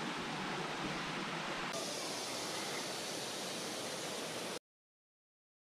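A stream trickles over rocks.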